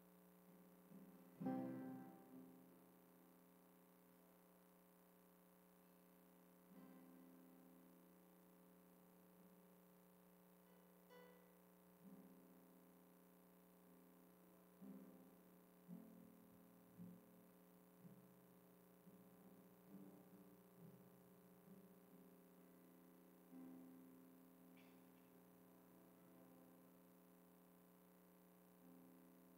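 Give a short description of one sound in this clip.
A keyboard plays soft, slow, sustained chords.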